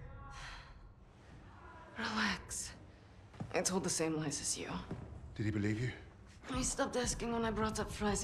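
A young woman speaks in a low, tense voice close by.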